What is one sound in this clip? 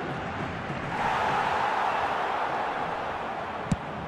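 A stadium crowd swells into a loud cheer.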